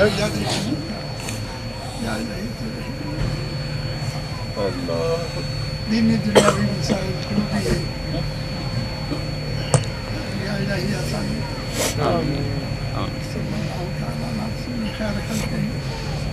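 An elderly man prays aloud into a microphone, heard through a loudspeaker.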